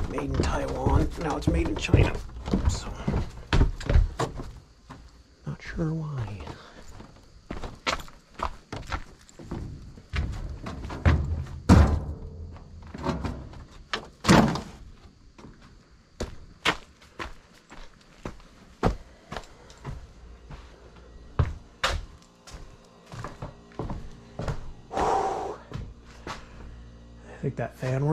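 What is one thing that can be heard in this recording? Footsteps crunch and scrape over debris.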